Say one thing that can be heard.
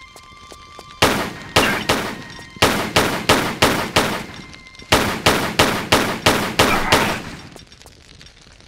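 Pistol shots ring out in quick bursts and echo.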